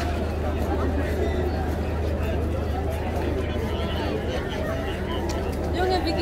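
A crowd of men and women chatters outdoors, many voices overlapping.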